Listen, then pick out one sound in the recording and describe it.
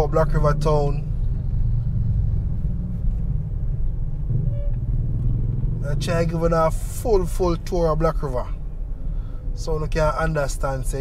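A vehicle engine rumbles steadily while driving along a street.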